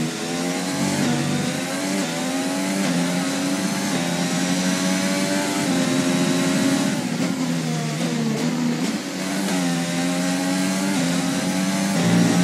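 A racing car engine screams at high revs, rising and dropping as gears shift.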